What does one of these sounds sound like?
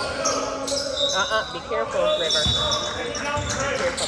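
Sneakers squeak sharply on the hardwood floor.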